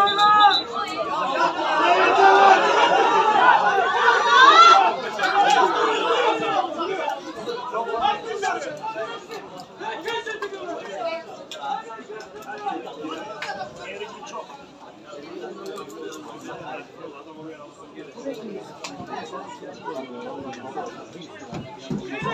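Men shout and call out across an open outdoor pitch.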